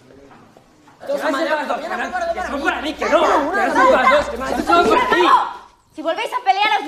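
Young men talk excitedly over each other.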